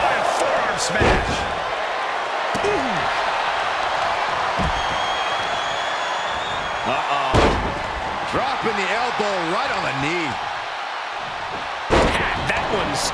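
Bodies slam hard onto a wrestling mat with heavy thuds.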